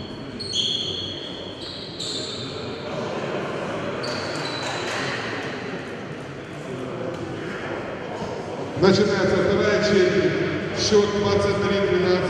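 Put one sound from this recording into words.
Two men talk quietly in a large echoing hall.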